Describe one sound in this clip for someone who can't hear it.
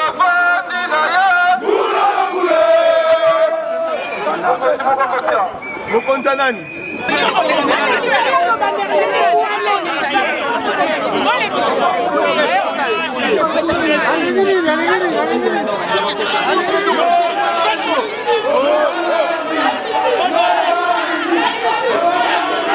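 A crowd of men and women talks and shouts outdoors.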